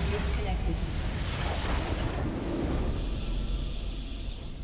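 A tower explodes with a deep rumbling blast.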